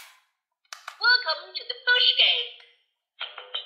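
A plastic toy plays short electronic beeps and a tune.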